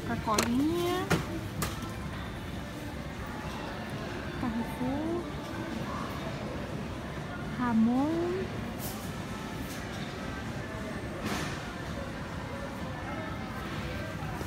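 Plastic bottles knock together in a shopping basket.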